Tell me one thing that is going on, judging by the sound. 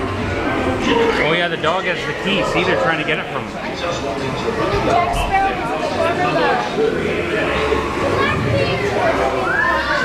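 Several men sing and shout over loudspeakers in an echoing space.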